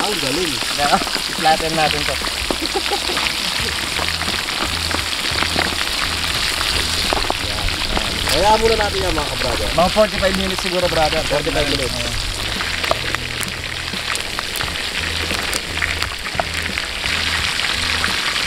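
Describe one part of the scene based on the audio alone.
Hot oil bubbles and sizzles vigorously.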